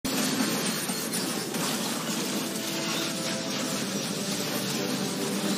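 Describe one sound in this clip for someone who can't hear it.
Video game battle effects clash and whoosh steadily.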